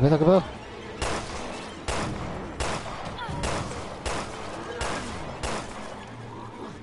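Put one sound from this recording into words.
Gunshots ring out several times in quick succession.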